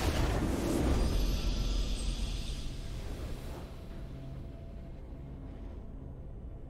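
A triumphant game fanfare plays and fades.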